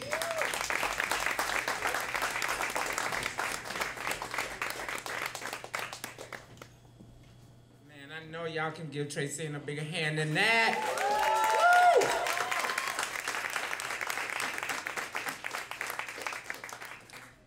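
An audience applauds and cheers.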